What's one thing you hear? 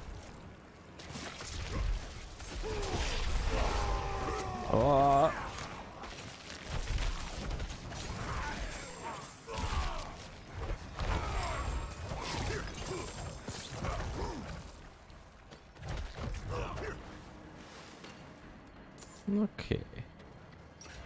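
Heavy blows and magic blasts crash repeatedly in a fight.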